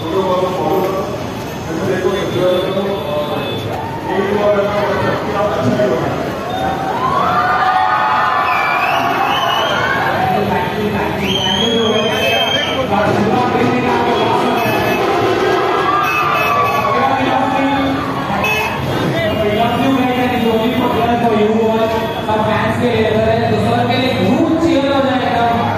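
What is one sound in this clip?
A large crowd cheers and shouts excitedly outdoors.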